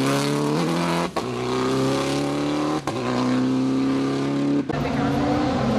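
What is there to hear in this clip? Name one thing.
A rally car engine revs hard and shifts gears as it races away.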